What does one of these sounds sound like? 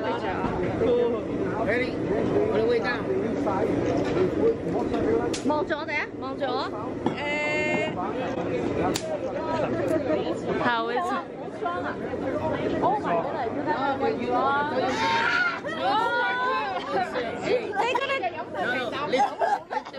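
A busy crowd murmurs all around outdoors.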